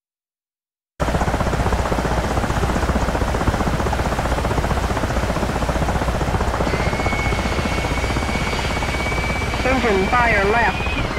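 Jet engines roar steadily close by.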